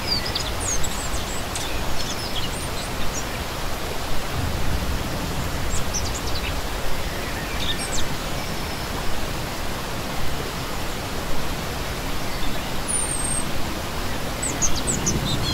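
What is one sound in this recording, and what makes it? A shallow stream rushes and splashes steadily over rocks.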